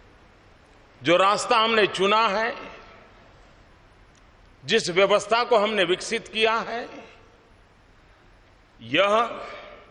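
An elderly man speaks slowly and formally into a microphone, with long pauses.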